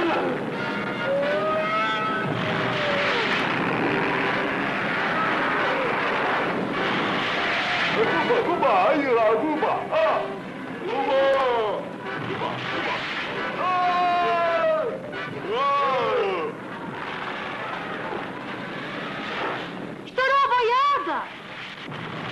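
Elephants trumpet loudly.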